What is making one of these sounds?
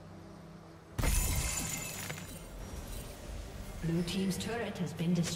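A stone tower crumbles with a heavy crash in a video game.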